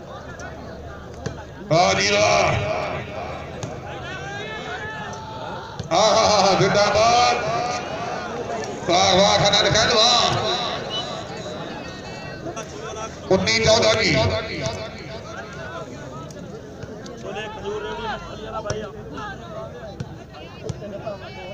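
Men's voices shout and call out nearby in a crowd.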